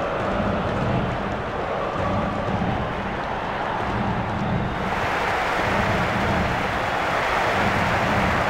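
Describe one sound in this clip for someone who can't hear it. A large stadium crowd roars steadily and swells louder.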